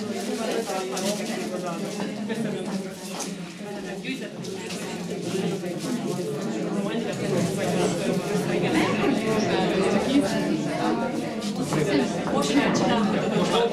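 A middle-aged woman reads out calmly from a short distance.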